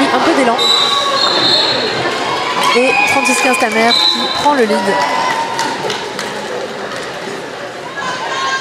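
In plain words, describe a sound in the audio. A crowd of spectators chatters and calls out nearby.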